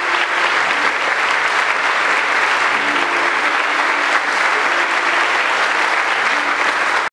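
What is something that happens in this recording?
A large crowd of men and women sings together in a reverberant hall.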